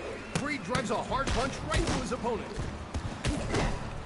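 A punch lands with a thud.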